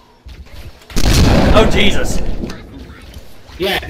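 A loud blast bursts close by and roars.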